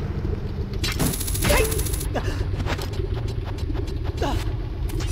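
A game character climbs a wooden ladder with short knocking steps.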